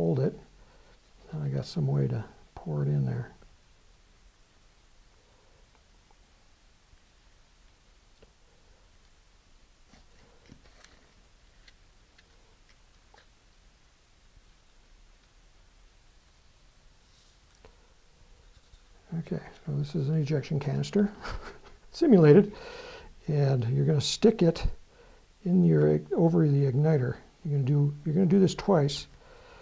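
Paper and tape rustle softly in a man's hands.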